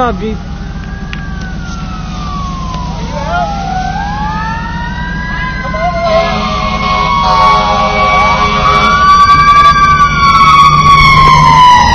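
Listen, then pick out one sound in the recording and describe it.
A fire engine siren wails, rising and falling and growing louder.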